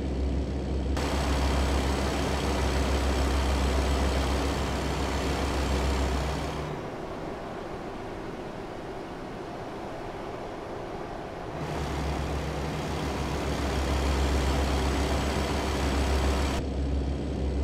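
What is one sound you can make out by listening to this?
A truck's engine roars loudly as it drives past on the road.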